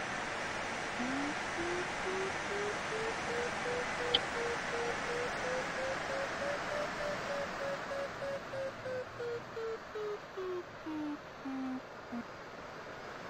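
A variometer beeps in quick pulses, rising and then falling in pitch.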